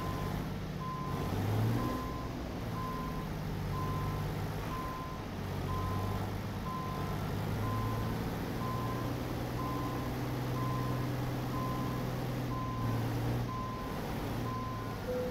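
A truck's reversing alarm beeps steadily and evenly.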